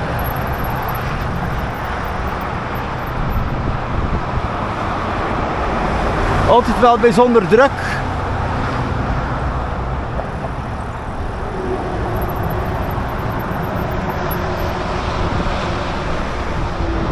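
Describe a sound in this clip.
Traffic roars steadily on a nearby highway.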